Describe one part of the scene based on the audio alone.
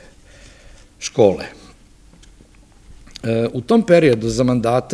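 A middle-aged man speaks calmly into a microphone, reading out.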